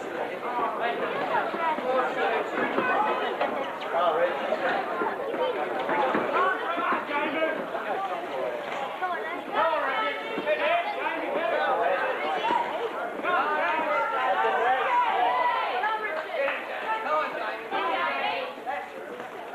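A crowd of men shouts and cheers in a large echoing hall.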